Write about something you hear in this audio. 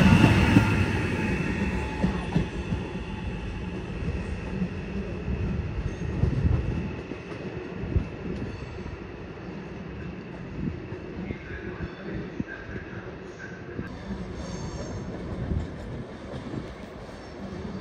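A train rolls away into the distance, its rumble fading.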